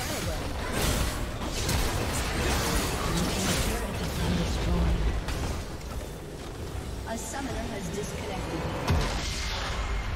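Spell blasts, clashes and explosions crash in quick succession during a video game battle.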